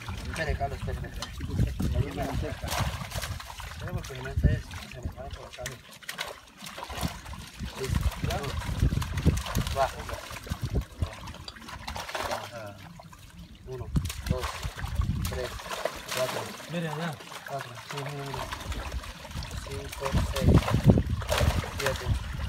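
Water splashes and sloshes as men wade and work in it.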